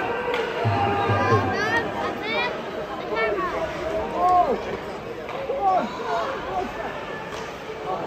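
Children chatter and shout close by in a large echoing arena.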